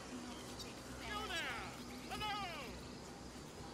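A man calls out a cheerful greeting.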